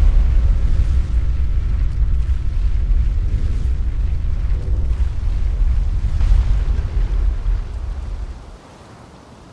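A heavy stone lift rumbles deeply as it descends.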